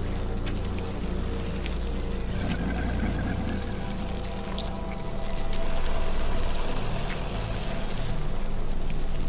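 A huge snake's body slithers and scrapes along metal railings.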